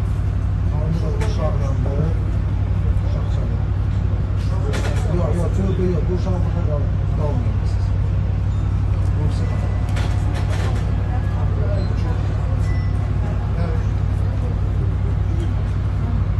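Several men talk nearby in low, calm voices.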